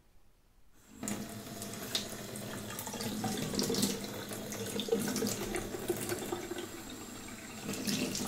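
Water pours from a tap and splashes into a metal sink.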